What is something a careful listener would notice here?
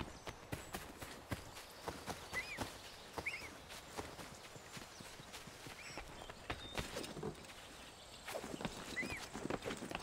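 Footsteps crunch quickly through grass and undergrowth.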